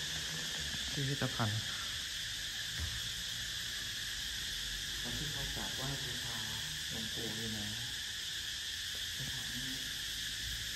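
A man speaks calmly nearby, in short phrases.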